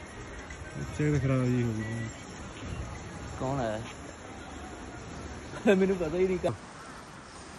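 A man speaks loudly and with animation close by, outdoors.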